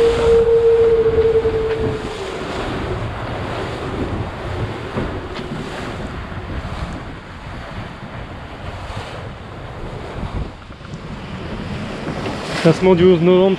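Water rushes and splashes against a sailing boat's hull.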